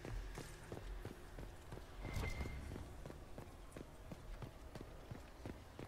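Heavy footsteps thud quickly on a stone floor, echoing in a hall.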